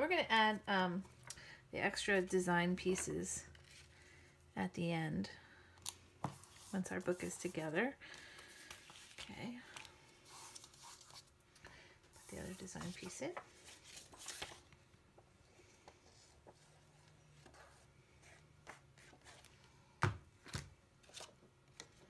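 Card stock rustles and slides under hands.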